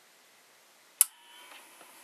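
A phonograph needle drops onto a spinning record with a sharp click.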